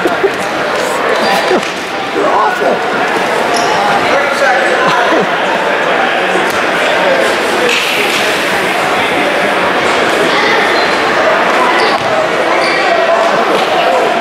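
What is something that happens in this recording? A crowd of people chatter and call out in a large echoing gym.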